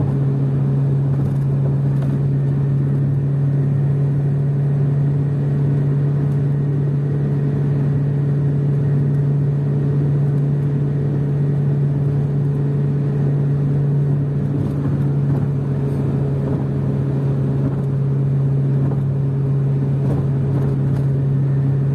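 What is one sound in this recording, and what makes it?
Tyres roar on a smooth road.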